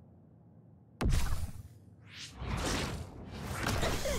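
A sharp whoosh rushes past.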